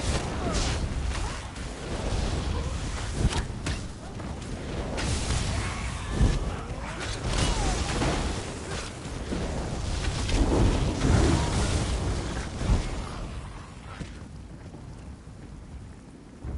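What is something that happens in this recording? Spell blasts and weapon hits crackle and boom in a game fight.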